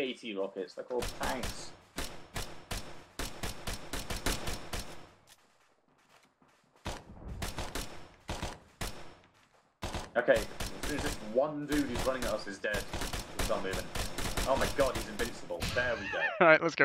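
Rifle shots fire in rapid bursts, close by.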